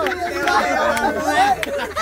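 Young women laugh and chatter.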